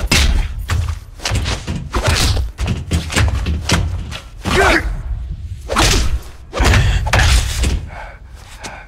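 A man grunts and gasps with effort.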